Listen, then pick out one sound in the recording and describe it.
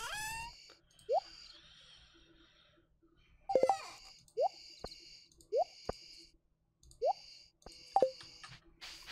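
Short, soft clicking blips play as items are moved in a game menu.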